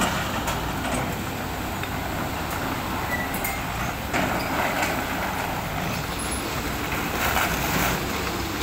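A diesel excavator engine rumbles under load.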